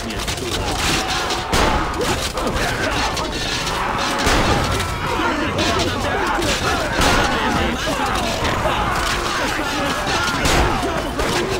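Blades clash in a close fight.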